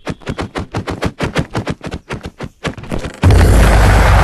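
Rapid sword blows land in quick succession.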